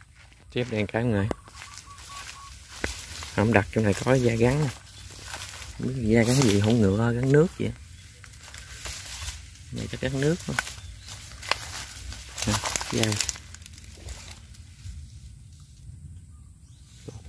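Dry leaves and twigs rustle and crackle underfoot.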